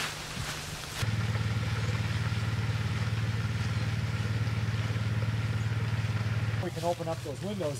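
A vehicle engine rumbles steadily on a gravel road.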